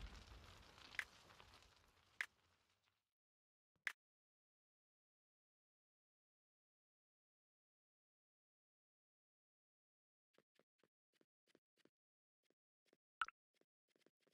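Soft game menu clicks sound now and then.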